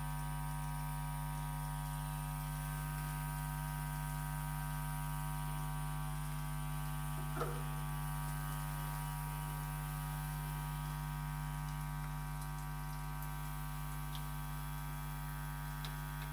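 A steady electrical hum comes from a record player.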